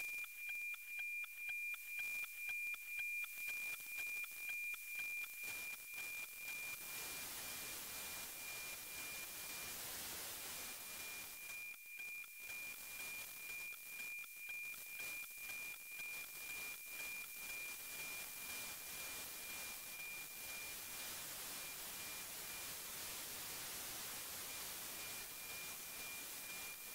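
A radio receiver plays a satellite signal as a steady high whistle with a rapid, regular ticking beat.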